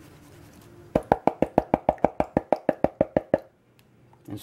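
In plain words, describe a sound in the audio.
A hand taps rapidly on a plastic pan.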